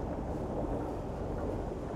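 An escalator hums steadily.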